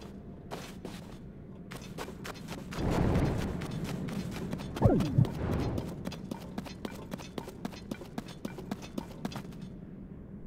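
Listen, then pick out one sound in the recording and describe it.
Quick footsteps tap on hard rocky ground.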